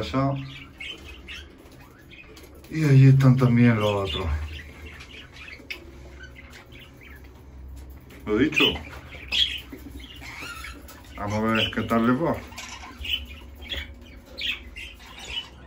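Budgies chirp and twitter nearby.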